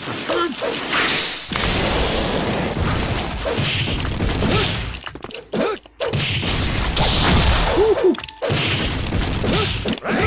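An energy blast whooshes and crackles.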